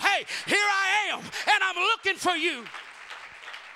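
A man sings loudly and powerfully into a microphone, heard through loudspeakers in a large echoing room.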